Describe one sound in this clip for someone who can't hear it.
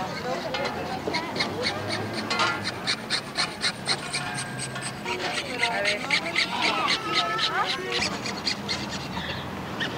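A small hammer taps rapidly on metal.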